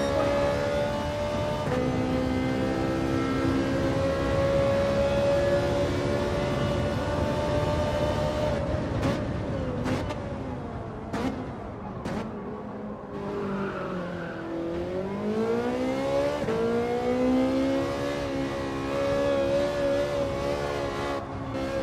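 A racing car engine roars at high revs, drops low as the car slows, then climbs again as it speeds up.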